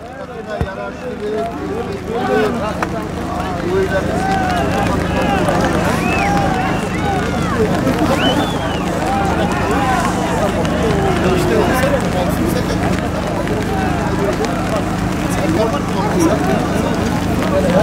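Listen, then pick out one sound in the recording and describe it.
A large crowd of men shouts and whoops outdoors.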